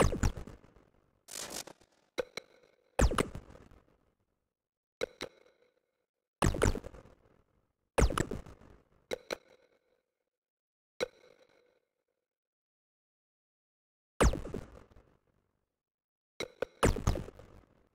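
Menu clicks and whooshes sound as options change.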